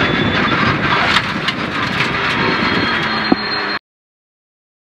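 Gravel and stones rattle and knock against the underside of the car.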